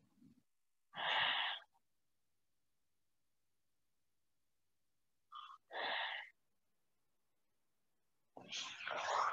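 A woman breathes out deeply in long, slow breaths, close by.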